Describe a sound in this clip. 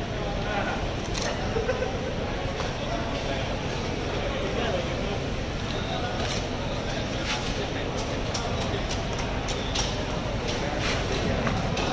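A knife slices through fish flesh with wet cutting sounds.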